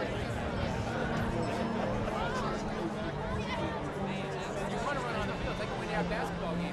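A large crowd chatters in the stands.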